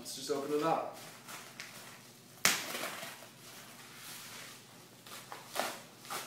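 Paper rustles and crinkles as it is folded.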